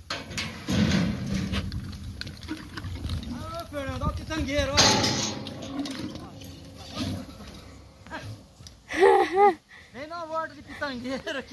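Hooves thud and scuff on dirt as a calf bucks and runs.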